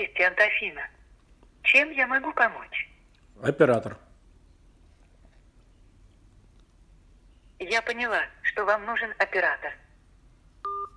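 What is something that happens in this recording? A woman's voice speaks calmly through a phone loudspeaker.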